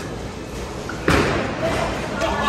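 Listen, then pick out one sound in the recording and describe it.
A bowling ball rolls down a lane and crashes into pins.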